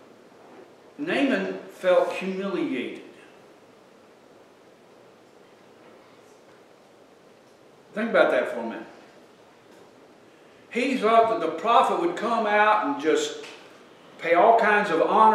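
An elderly man preaches with animation into a microphone, pausing between phrases.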